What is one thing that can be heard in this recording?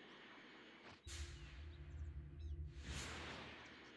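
A deep roaring whoosh surges and fades as the flight speeds up.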